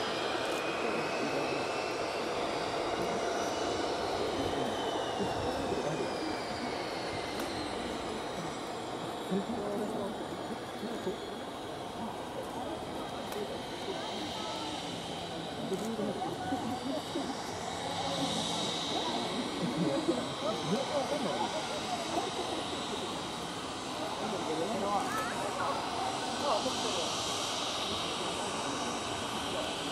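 A jet engine whines and roars steadily from a distance as a small plane taxis.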